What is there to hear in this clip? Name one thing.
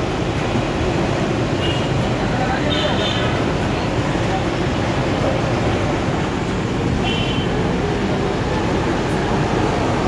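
A metal skimmer scrapes against the pan.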